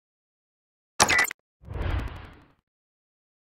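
A short chime sounds for a victory.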